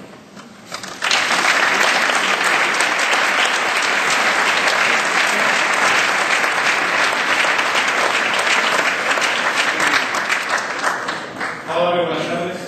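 Hands clap loudly in applause.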